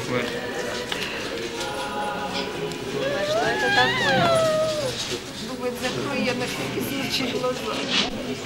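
Several women talk and laugh cheerfully close by.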